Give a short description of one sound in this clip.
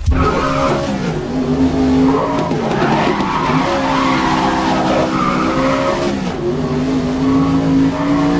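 A racing car engine roars loudly, its pitch rising and falling through gear shifts.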